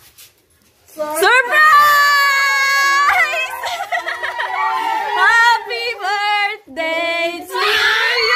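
A group of men and women sing together loudly nearby.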